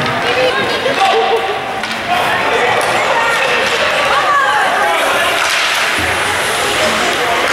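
Ice skates scrape and glide across the ice.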